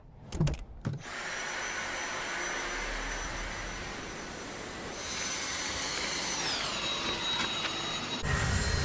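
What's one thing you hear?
A vacuum cleaner whirs steadily with a high whine.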